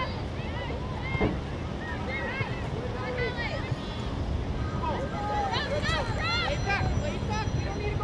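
Young players and adult spectators shout and call out across an open field.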